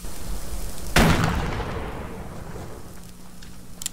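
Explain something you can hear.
A shotgun fires a loud blast that echoes away.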